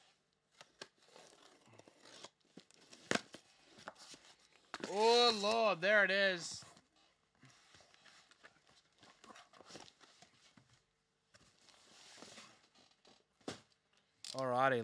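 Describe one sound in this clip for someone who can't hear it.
Cardboard boxes rustle and knock as they are handled.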